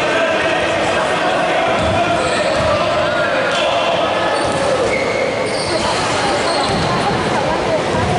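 A man talks urgently in a large echoing hall.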